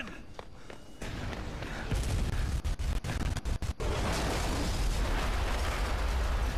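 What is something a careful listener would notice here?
An explosion booms and roars with a heavy rumble.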